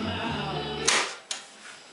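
An old radio plays a station, then fades out.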